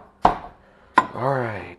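A pan clunks down onto a stovetop.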